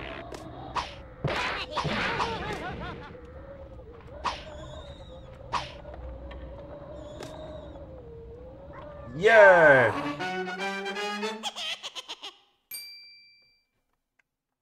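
Cartoonish video game sound effects pop, bounce and chime.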